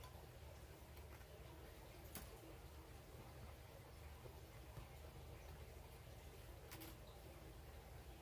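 Cloth rustles softly.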